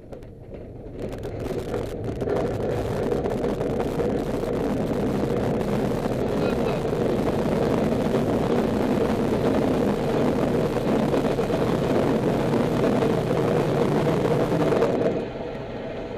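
Wind rushes loudly past a glider's canopy.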